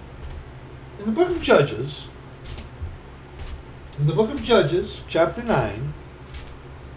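A middle-aged man speaks close to a microphone in short bursts.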